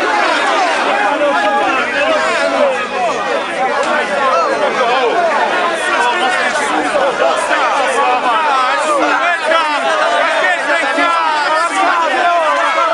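A large crowd of men and women shouts and chants loudly close by, outdoors.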